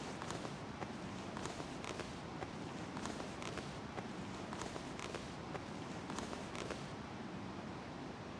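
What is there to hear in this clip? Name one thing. A man crawls through grass with soft rustling.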